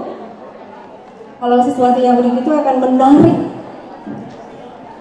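A woman speaks into a microphone over loudspeakers, reading out in a steady voice.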